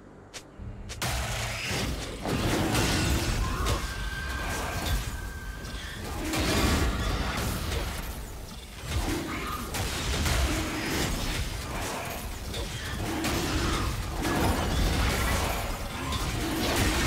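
Magic blasts whoosh and crackle in a video game fight.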